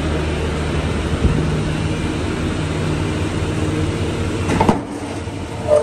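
A truck engine idles with a low, steady hum.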